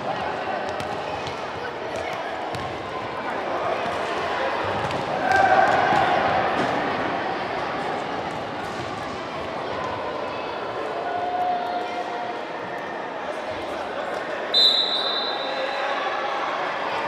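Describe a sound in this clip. Children shout to each other in a large echoing hall.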